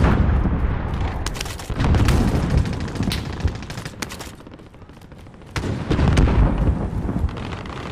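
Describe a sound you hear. A fire roars and crackles nearby.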